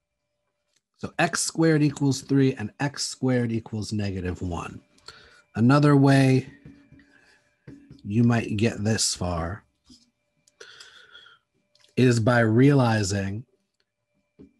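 A man speaks calmly and explains into a close microphone.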